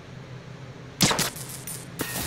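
A suppressed pistol fires a sharp shot.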